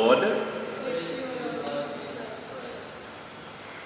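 A man speaks calmly through a microphone in an echoing hall.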